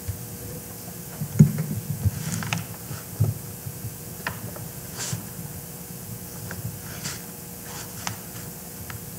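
A scroll knocks and rustles as it is rolled.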